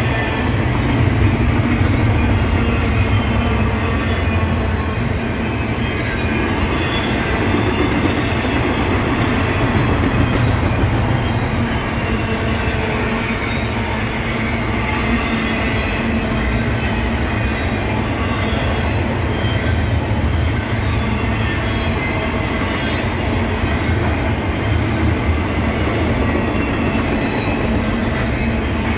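Steel wheels squeal and screech faintly against the rails.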